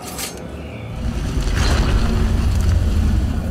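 Stone scrapes and rumbles as someone climbs a rock wall.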